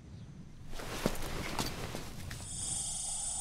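A small plastic device clicks as it is handled.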